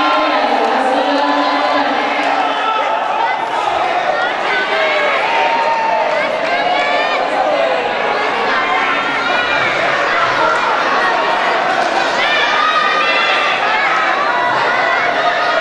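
A crowd chatters and calls out throughout a large echoing hall.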